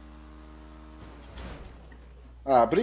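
A motorcycle crashes into a car with a thud.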